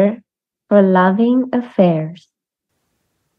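A young woman speaks cheerfully over an online call.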